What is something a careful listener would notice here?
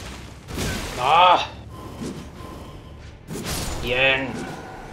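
A young man exclaims loudly, close to a microphone.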